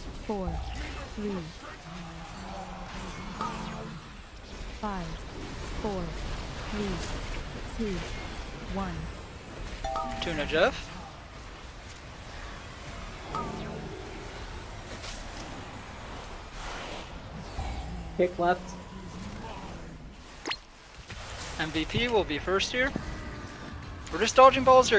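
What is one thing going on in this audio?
Gliding magical tones chime over and over.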